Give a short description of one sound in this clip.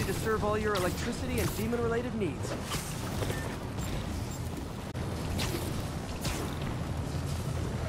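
Wind rushes by in short whooshes.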